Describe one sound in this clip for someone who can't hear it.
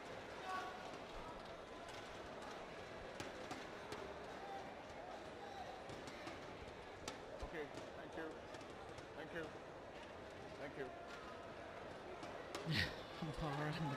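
A mop swishes across a hard court floor.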